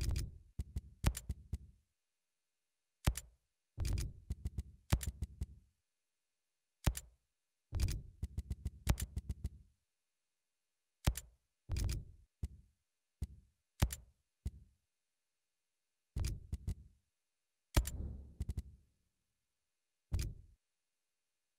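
Short electronic menu clicks sound again and again.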